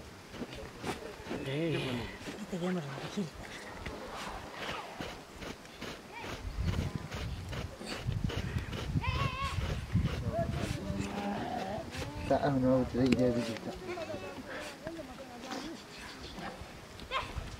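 Shears snip through goat hair.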